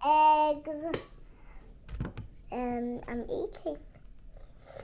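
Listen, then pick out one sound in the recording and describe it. A young girl speaks in a singsong, drawn-out voice close by.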